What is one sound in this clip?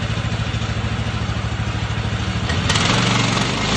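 A sawmill engine idles with a steady low rumble.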